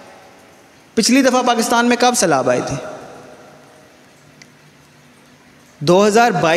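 A man speaks with emphasis into a microphone in a room with a slight echo.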